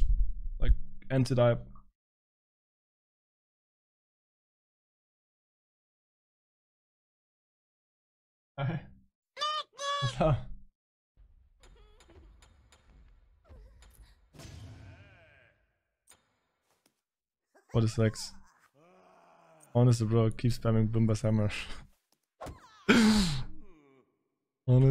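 A young man talks with animation into a close microphone.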